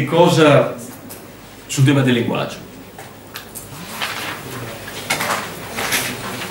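A middle-aged man speaks calmly and haltingly into a microphone in a room with a slight echo.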